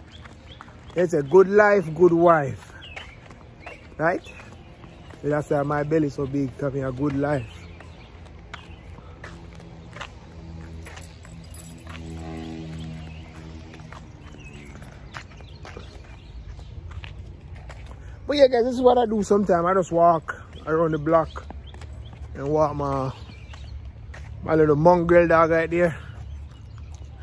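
A man talks with animation close to a microphone, outdoors.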